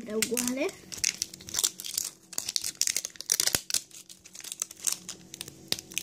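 Plastic wrapping crinkles and rustles between fingers.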